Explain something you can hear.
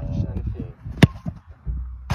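A football is kicked hard with a sharp thud.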